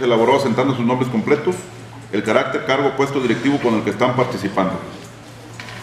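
A man speaks into a microphone at close range, reading out.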